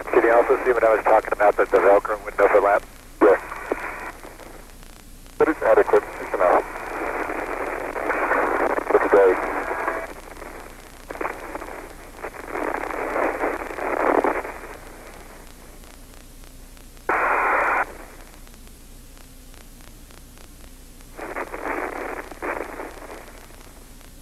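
A man speaks in short bursts over a crackly, thin radio link.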